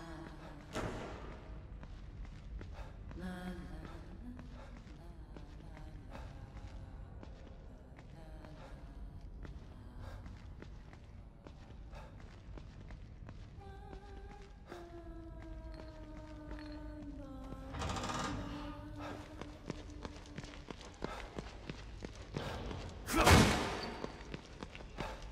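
Hurried footsteps thud on a hard floor.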